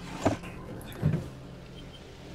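A wooden drawer slides open with a soft thud.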